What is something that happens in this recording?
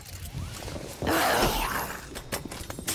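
A loud blast bursts out.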